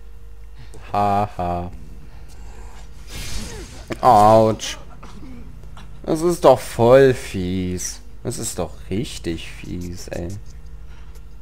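A man speaks forcefully, close by.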